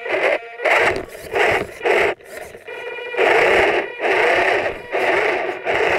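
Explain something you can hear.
A small toy car's electric motor whines in short bursts, close by.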